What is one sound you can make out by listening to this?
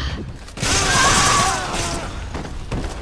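A young woman cries out in pain.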